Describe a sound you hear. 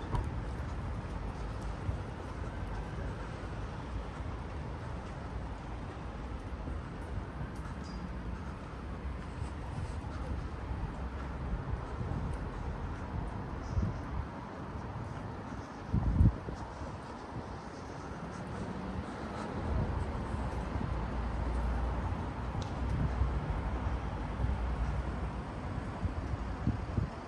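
Footsteps tap along a pavement outdoors.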